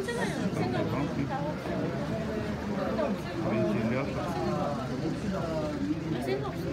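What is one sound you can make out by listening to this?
Men and women chat over one another nearby.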